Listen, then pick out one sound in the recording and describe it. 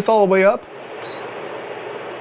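A cooktop button beeps briefly.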